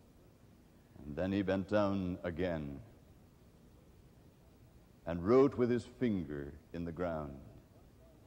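A middle-aged man speaks slowly and solemnly into a microphone, with pauses.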